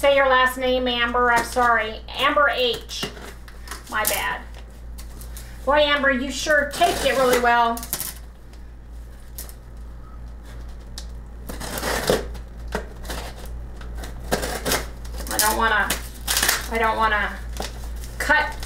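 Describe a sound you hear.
A knife blade scrapes and slices through packing tape.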